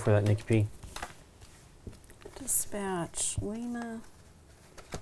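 Playing cards rustle and tap on a table.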